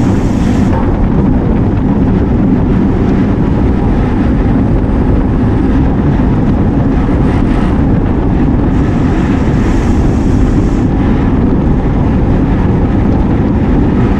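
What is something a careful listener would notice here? Wind rushes loudly past, as if riding fast outdoors.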